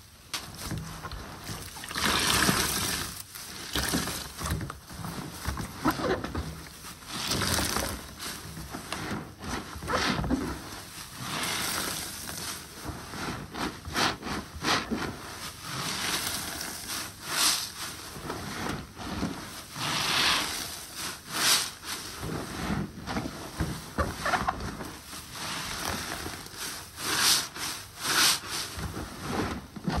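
Gloved hands squeeze soapy sponges in water, with squelching and sloshing.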